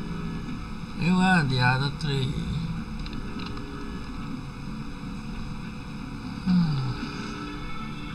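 A young man laughs into a microphone.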